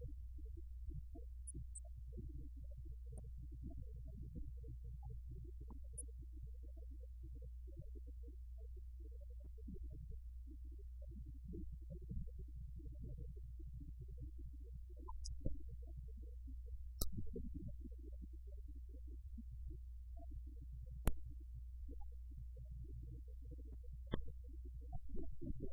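Several men and women talk quietly among themselves, muffled.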